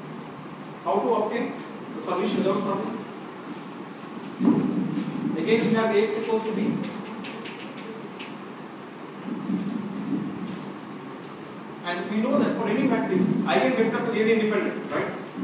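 A man lectures aloud in a room with some echo.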